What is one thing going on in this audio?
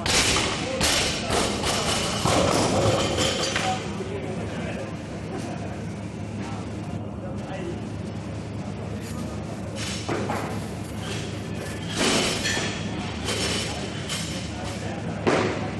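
Men talk and call out in a large echoing room.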